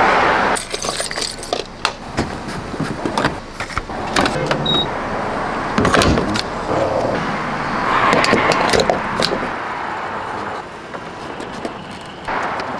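A fuel cap is twisted and clicks.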